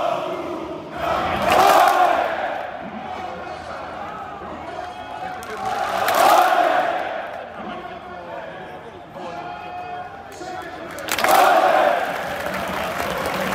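A large crowd roars and cheers in sudden loud bursts.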